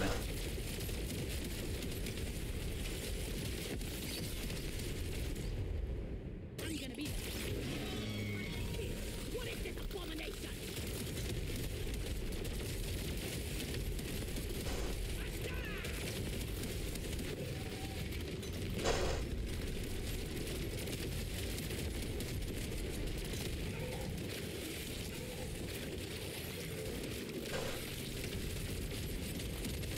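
Guns fire rapidly with crackling blasts and explosions.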